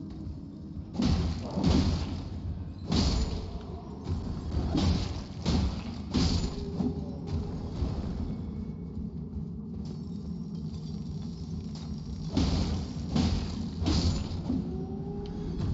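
Weapons clash and strike with heavy impacts.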